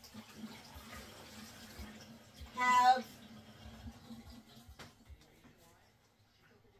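Dishes clink and clatter at a sink nearby.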